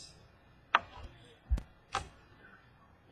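Playing cards tap and click against a hard tabletop.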